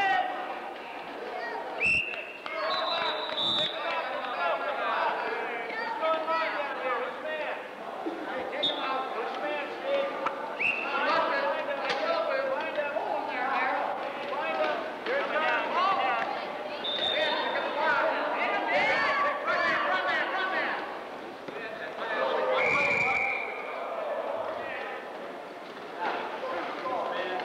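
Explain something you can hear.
A crowd of people chatter and call out in a large echoing hall.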